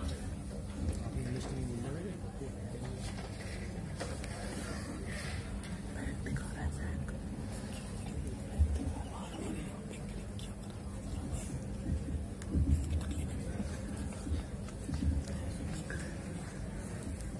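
People murmur quietly in a large echoing hall.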